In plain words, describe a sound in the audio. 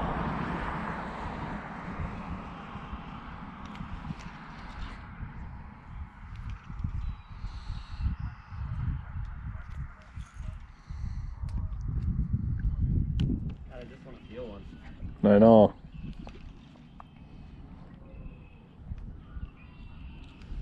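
A fishing reel clicks and rattles as it is handled.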